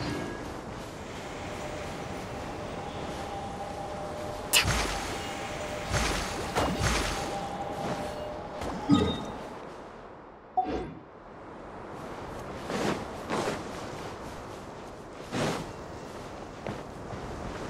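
Footsteps patter quickly on soft sand.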